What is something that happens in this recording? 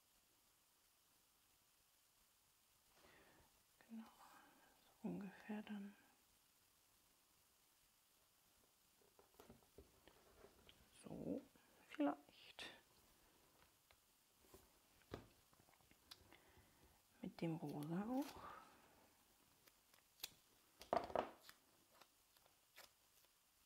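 Paper rustles and taps softly as hands handle it.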